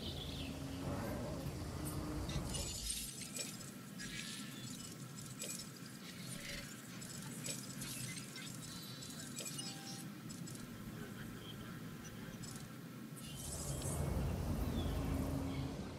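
Jungle ambience with birds and insects hums outdoors.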